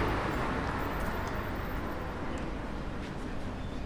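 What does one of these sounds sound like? A car drives past on the street.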